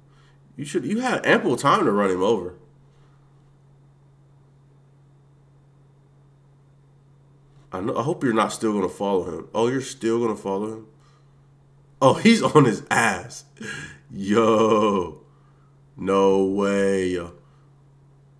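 A young man speaks with animation close to a microphone, in bursts with pauses.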